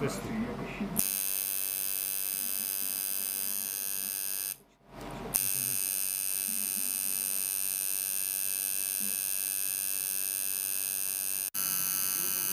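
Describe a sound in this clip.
A tattoo machine buzzes steadily.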